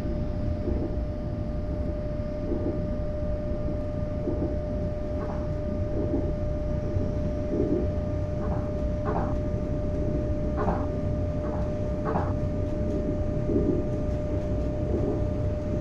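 A train rumbles steadily along the track.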